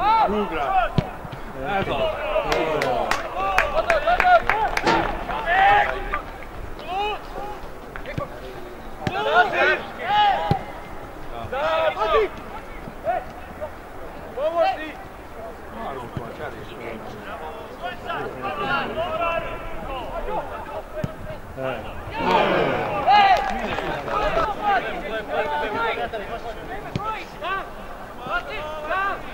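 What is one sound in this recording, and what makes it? Players shout to each other across an open pitch outdoors.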